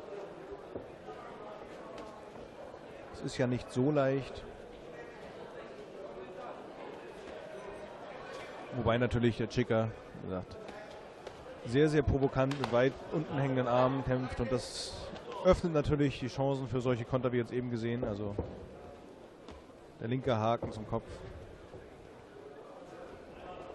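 A crowd murmurs in the background of a large hall.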